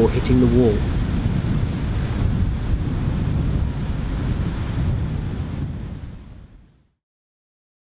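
Waves crash and wash onto a shore.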